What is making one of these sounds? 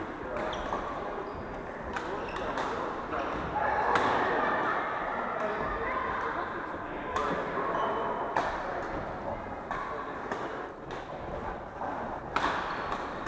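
Shoes squeak on a wooden court floor.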